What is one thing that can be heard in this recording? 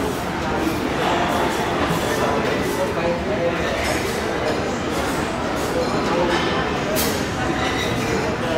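A live band plays loud music with electric guitars and drums.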